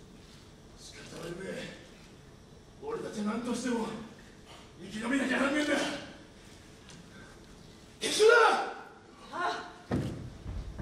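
A young man speaks loudly and dramatically, echoing in a large hall.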